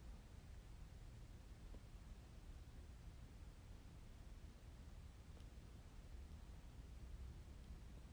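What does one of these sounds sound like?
Hands press and fold soft dough on a wooden board.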